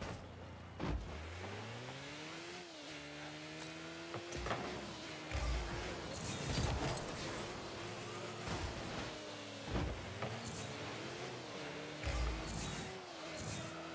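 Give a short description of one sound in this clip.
A game car's engine hums and revs.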